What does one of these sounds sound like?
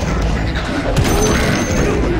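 A fiery blast roars.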